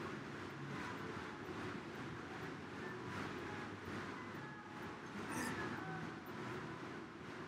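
A young man breathes heavily.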